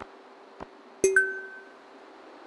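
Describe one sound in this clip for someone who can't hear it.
A bright chime rings once.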